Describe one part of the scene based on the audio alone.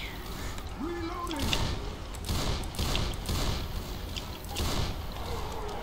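A rifle fires several shots.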